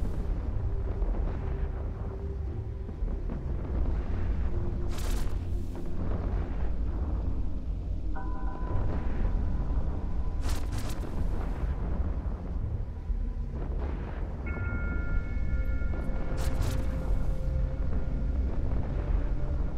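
Mining lasers hum steadily with a low electronic drone.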